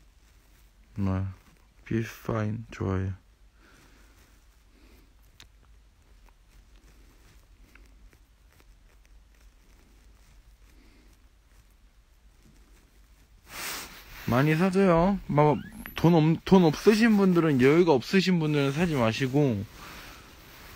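A young man speaks close to a phone microphone, in short bursts and then with animation.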